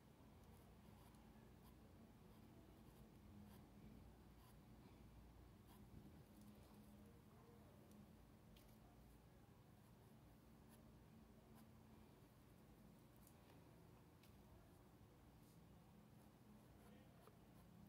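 A paintbrush softly dabs and strokes on cloth.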